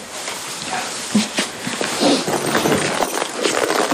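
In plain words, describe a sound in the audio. A young man speaks softly, close by.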